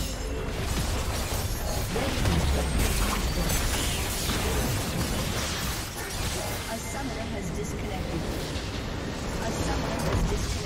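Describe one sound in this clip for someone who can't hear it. Magic blasts and weapon clashes crackle rapidly in a busy fight.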